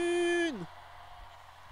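A man sings a long held note through loudspeakers, which then falls away.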